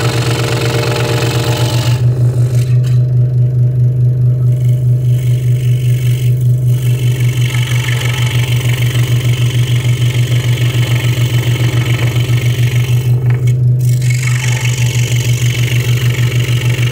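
A scroll saw hums and chatters steadily as its blade cuts through wood.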